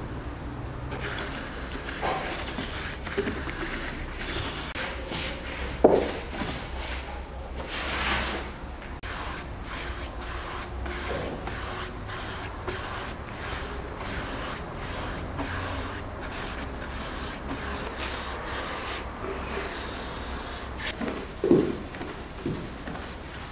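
A wide brush swishes wet oil across wooden boards.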